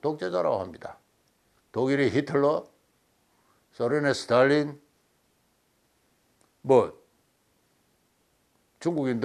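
An elderly man speaks calmly and clearly, close to a microphone, in short phrases with pauses.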